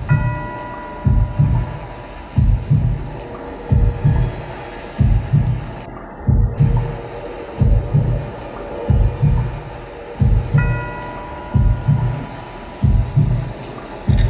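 A live band plays loudly in a large hall.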